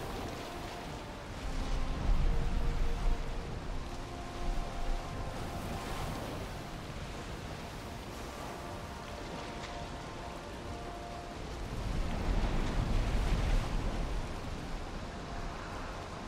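Heavy waves crash and surge against a wooden boat.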